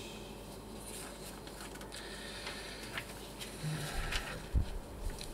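Paper sheets rustle in a man's hands.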